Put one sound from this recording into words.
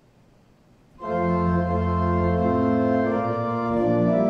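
A pipe organ plays loud, sustained chords in a large echoing hall.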